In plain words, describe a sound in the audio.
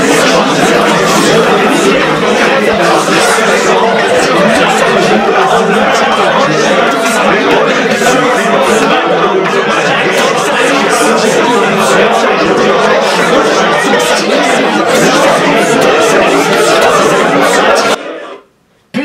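Young men sing and shout loudly together.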